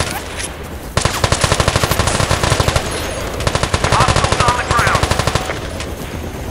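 Gunfire rattles in the distance.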